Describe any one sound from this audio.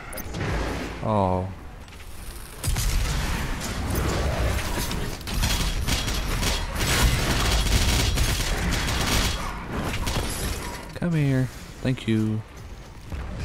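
Large creatures roar and growl.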